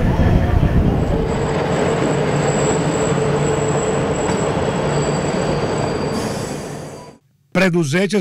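Train carriages clatter and squeal past close by.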